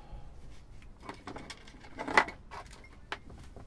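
Small plastic parts click and rattle as they are handled.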